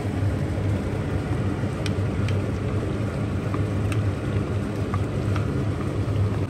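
A wooden spoon scrapes and taps against a bowl.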